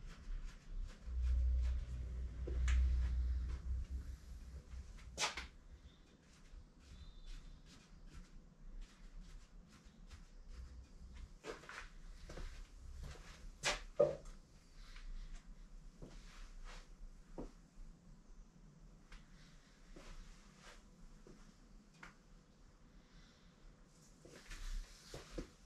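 Footsteps shuffle on a hard floor.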